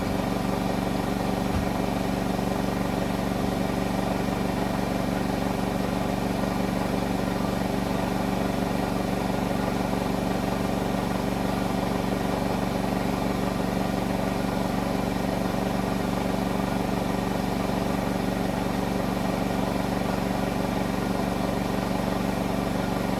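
Laundry thumps and rumbles inside a spinning washing machine drum.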